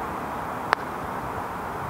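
A golf putter taps a ball with a short click.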